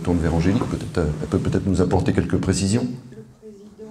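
An elderly man speaks into a microphone in a large echoing hall.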